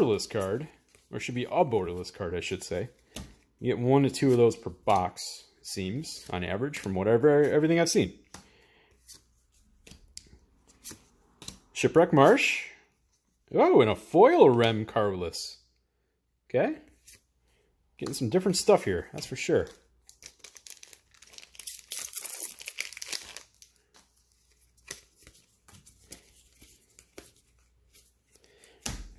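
Playing cards slide and tap against each other.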